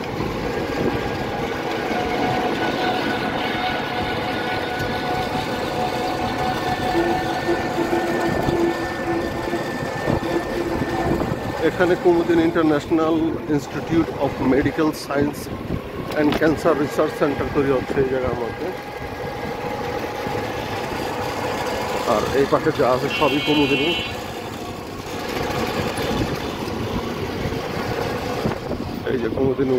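A small vehicle's motor hums steadily during a ride.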